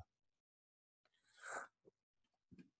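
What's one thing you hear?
A man slurps a drink through a straw.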